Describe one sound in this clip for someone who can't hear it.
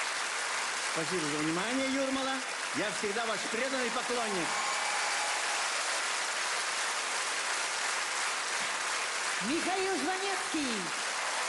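An audience applauds loudly throughout.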